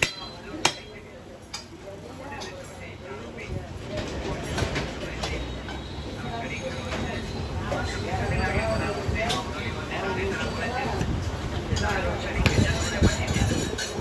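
A heavy cleaver chops through meat onto a wooden block.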